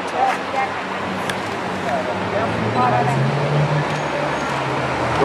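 A sports car engine rumbles deeply as the car drives slowly past close by.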